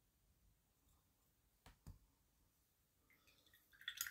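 A small plastic figure is set down on a table with a soft knock.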